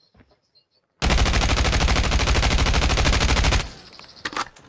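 A rifle fires a long rapid burst.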